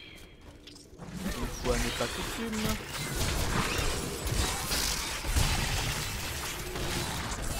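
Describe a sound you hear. Game combat sounds clash and crackle with magic effects.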